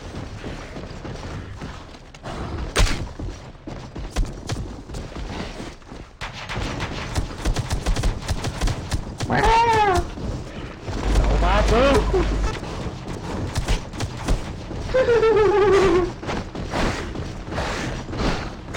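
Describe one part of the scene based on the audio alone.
Rapid gunshots crackle in bursts.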